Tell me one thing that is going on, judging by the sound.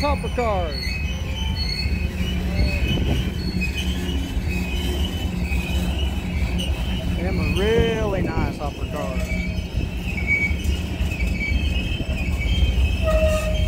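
Freight cars rumble and clatter past on rails close by.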